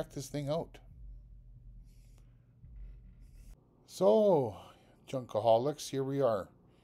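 An older man speaks calmly and closely into a microphone.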